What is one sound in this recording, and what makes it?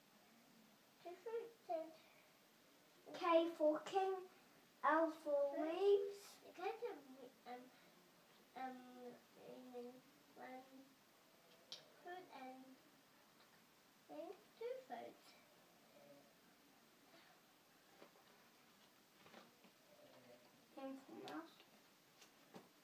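A young child talks and chatters nearby.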